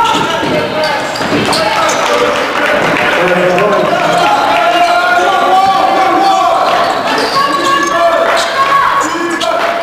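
Sneakers squeak on a hard court in a large echoing gym.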